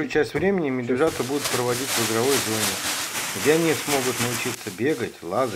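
Wood shavings pour out of a plastic bag with a rustle.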